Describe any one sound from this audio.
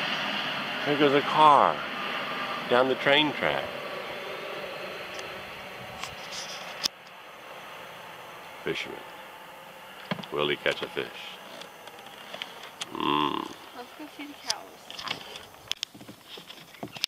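A young woman talks casually nearby outdoors.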